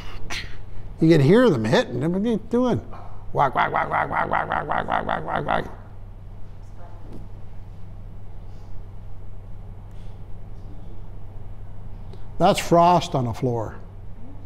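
An elderly man speaks in a room.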